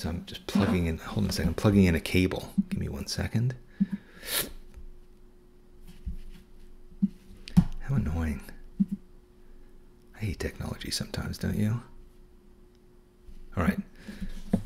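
A middle-aged man talks calmly into a close microphone, in short bursts with pauses.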